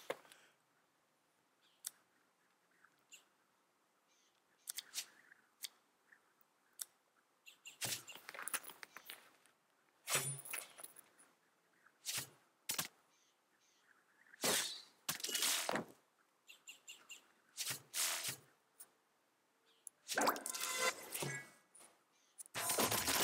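Short game sound effects chime and whoosh as cards are picked and played.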